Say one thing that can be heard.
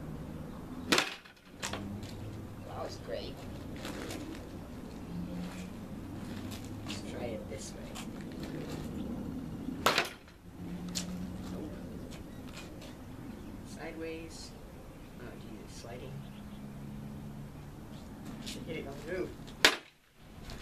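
A wooden stick smashes down hard on a cup.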